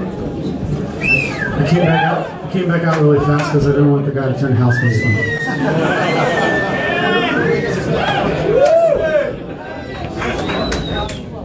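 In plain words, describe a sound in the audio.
A man sings into a microphone, heard through loudspeakers.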